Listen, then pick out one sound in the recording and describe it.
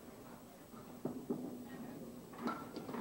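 Bowling pins clatter as they fall.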